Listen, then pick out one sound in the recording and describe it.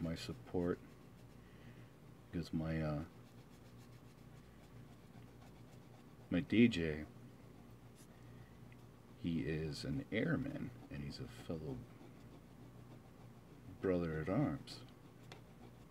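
A small tool scrapes lightly along metal contacts.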